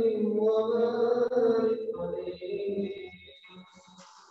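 A man chants into a microphone in an echoing hall, then falls silent.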